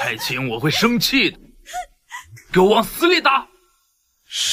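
A young man speaks close by, angrily and with force.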